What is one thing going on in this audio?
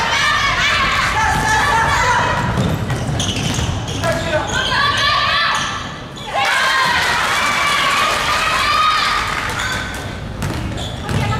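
Young players and spectators shout and cheer in a large echoing gym.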